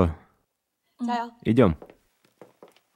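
Another woman answers in an encouraging voice.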